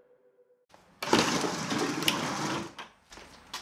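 Plastic buckets scrape and bump on a hard floor.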